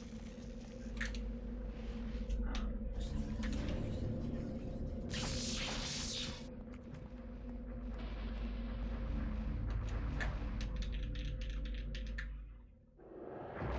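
Low, eerie music plays steadily.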